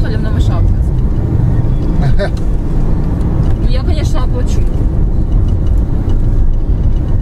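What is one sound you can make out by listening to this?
A car engine and road noise rumble steadily inside a moving car.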